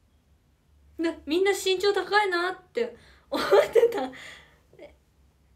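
A young woman giggles close by.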